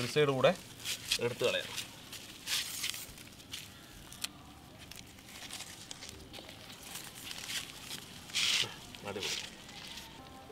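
Plastic tape rustles and crinkles against hollow pipes.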